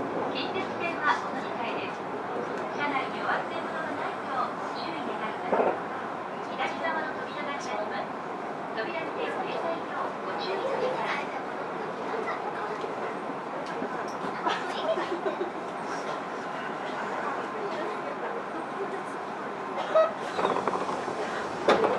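A stopped train hums steadily in an echoing station.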